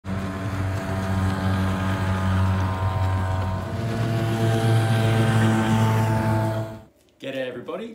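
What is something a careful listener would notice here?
A small outboard motor buzzes loudly as a boat speeds across the water.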